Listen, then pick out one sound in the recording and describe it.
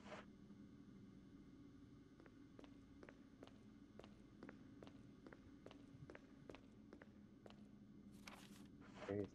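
Footsteps run quickly across a hard metal floor.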